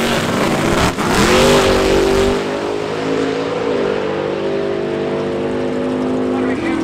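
A race car launches and roars away into the distance.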